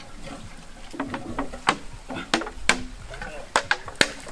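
Plastic pipes knock and clack sharply.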